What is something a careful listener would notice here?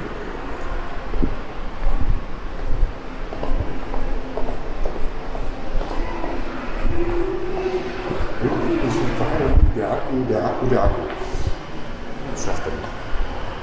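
Footsteps tap down a stone stairway.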